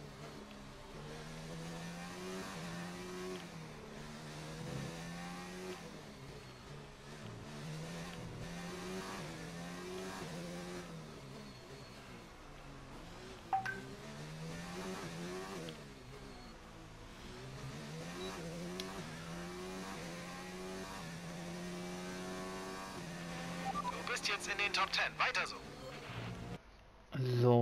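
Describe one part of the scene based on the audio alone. A racing car engine whines and revs up and down through the gears.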